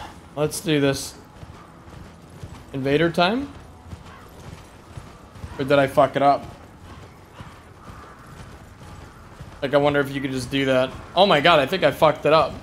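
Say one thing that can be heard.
A horse gallops over soft ground.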